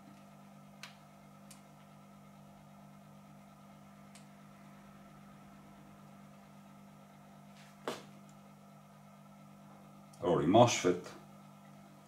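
An electrical hum drones steadily.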